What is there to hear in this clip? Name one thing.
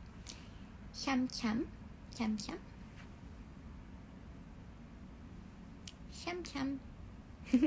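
A young woman speaks playfully in short bursts, close to a phone microphone.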